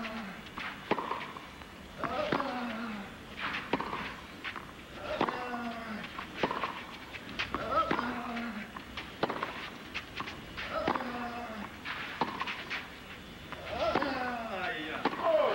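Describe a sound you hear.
A tennis ball is struck sharply back and forth.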